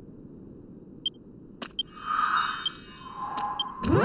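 Short electronic blips sound as a game menu is worked.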